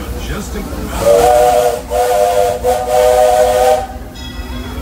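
A train whistle blows loudly.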